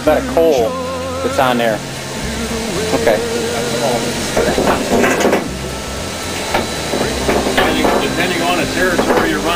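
A middle-aged man talks close by over the engine noise.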